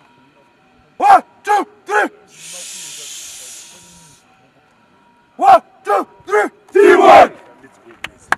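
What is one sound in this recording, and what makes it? A group of young men chant and shout loudly together outdoors.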